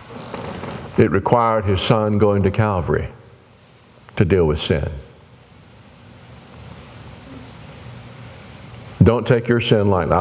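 An elderly man speaks calmly and earnestly into a microphone, with pauses.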